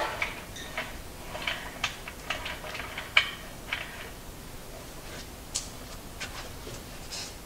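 Metal parts clank and knock.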